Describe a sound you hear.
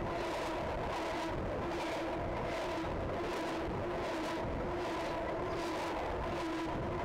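Train wheels squeal with a steady whine.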